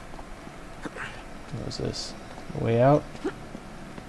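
Boots scuff and scrape on stone during a climb.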